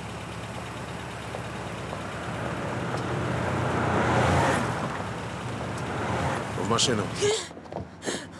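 City traffic hums and swooshes past nearby.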